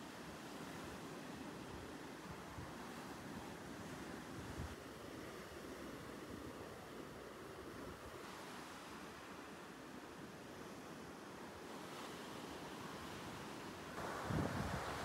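Small waves wash gently up onto a sandy shore.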